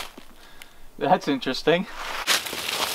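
A man speaks briefly further off outdoors.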